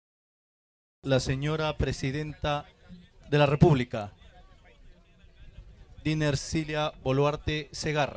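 A man speaks through loudspeakers outdoors.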